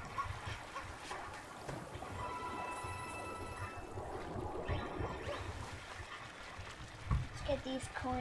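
Game music plays with bright chimes.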